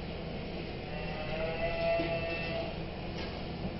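Steam whistles and hisses from a pot.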